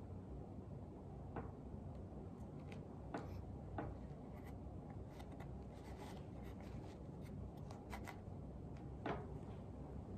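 A wooden board slides and taps softly on felt.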